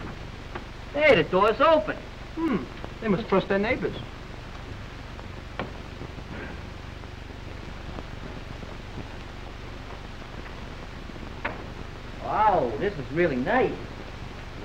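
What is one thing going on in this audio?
Men speak in raised, excited voices.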